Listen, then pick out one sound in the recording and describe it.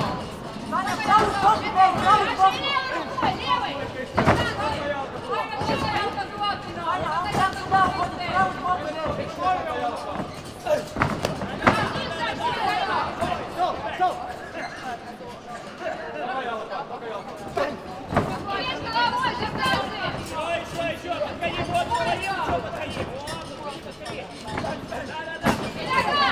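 Men shout encouragement loudly, echoing in a large hall.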